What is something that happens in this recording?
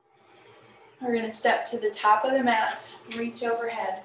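A woman speaks clearly and calmly, close to the microphone.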